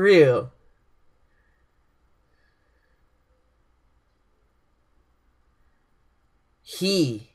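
A young man speaks briefly and cheerfully, close to a microphone.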